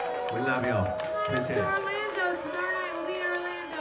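A crowd cheers and shouts along with the band.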